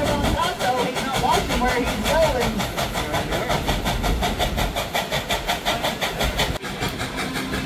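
Passengers chatter on an open train car.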